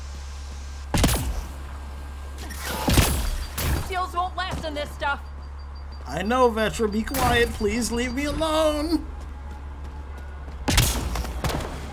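Game sound effects chime and thud.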